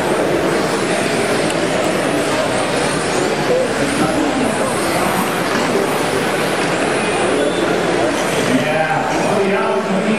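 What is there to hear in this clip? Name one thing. A crowd murmurs in a large echoing hall.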